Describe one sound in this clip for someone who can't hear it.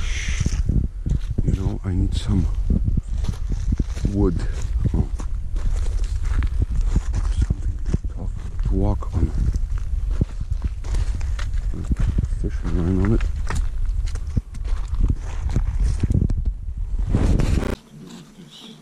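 Footsteps squelch and crunch on wet mud and gravel.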